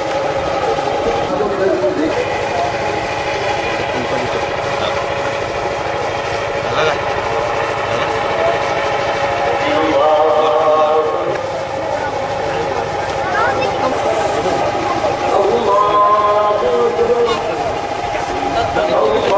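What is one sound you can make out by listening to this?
A large crowd of men chants a prayer together outdoors.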